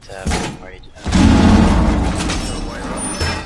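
A heavy metal panel clanks and scrapes into place.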